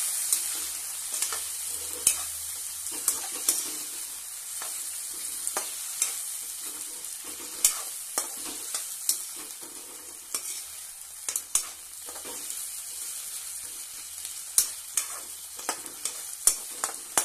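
Pieces of food sizzle steadily as they fry in hot oil.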